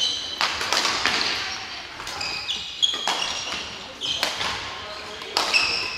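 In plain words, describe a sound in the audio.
Sneakers squeak sharply on a wooden court floor.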